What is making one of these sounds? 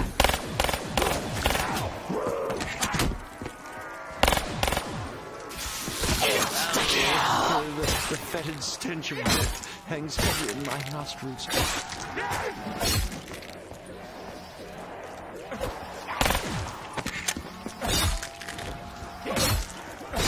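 Zombies growl and moan close by.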